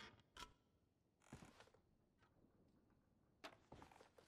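Wooden cabinet doors knock and creak open.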